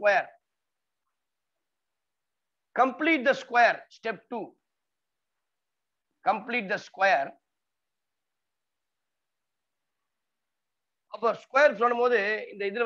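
A man speaks calmly and slowly into a close microphone, in short phrases with pauses.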